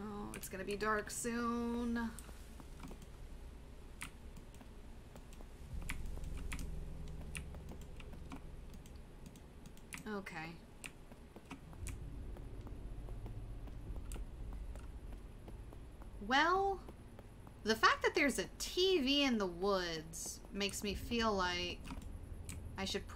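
A young woman talks with animation into a microphone, close up.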